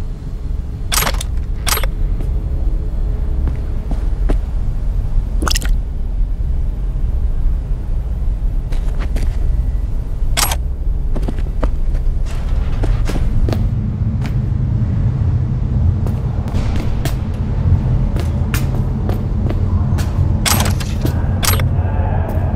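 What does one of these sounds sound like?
A metal case clicks open.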